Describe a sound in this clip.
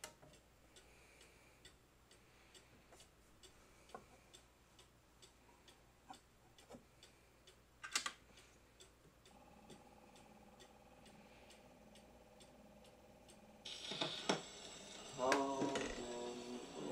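A spinning record ticks with steady, regular clicks.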